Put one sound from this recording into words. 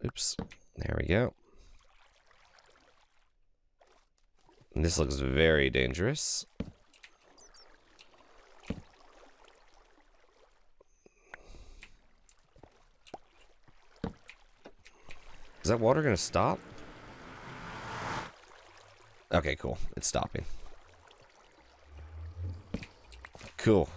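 Water trickles and flows softly.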